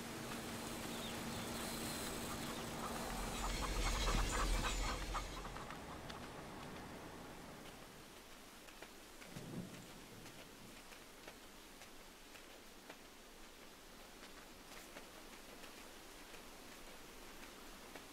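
Small paws patter softly on the ground.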